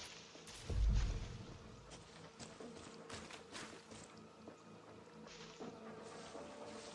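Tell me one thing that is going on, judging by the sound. Footsteps rustle through dense leafy undergrowth.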